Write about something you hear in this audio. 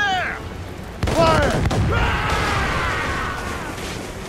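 A ship explodes with a loud blast.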